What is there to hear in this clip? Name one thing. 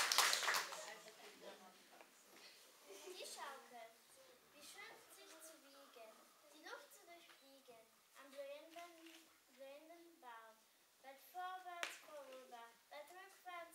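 A young girl recites loudly.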